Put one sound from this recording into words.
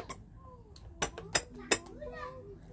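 A toy car's button clicks.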